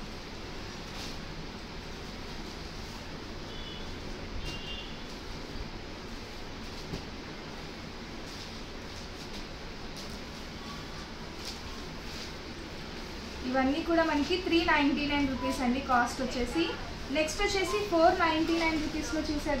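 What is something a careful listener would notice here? Fabric rustles softly as cloths are laid down and handled.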